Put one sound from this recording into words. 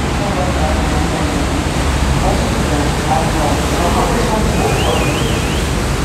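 Water splashes and churns in a passing boat's wake.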